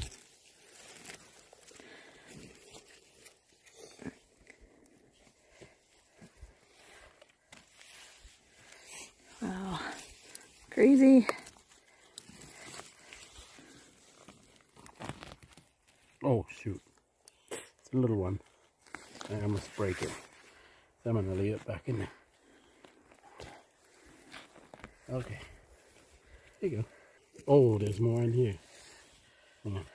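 Hands rustle through dry leaves and snap off mushrooms.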